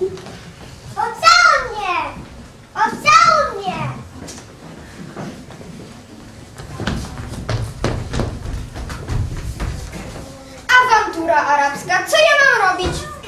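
A young girl speaks in a high voice.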